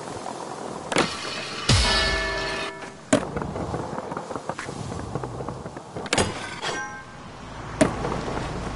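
A skateboard lands and clacks on hard ground.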